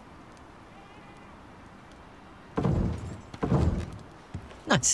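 Heavy wooden beams thud into place.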